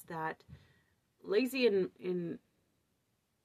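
A woman speaks thoughtfully, close to the microphone, in short bursts.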